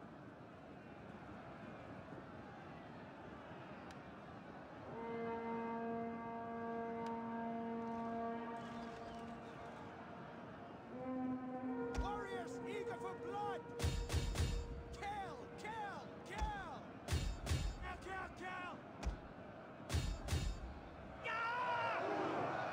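Soldiers clash and shout in a battle.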